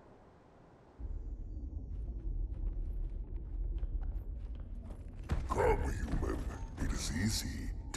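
A spacecraft's engine hums low and steady.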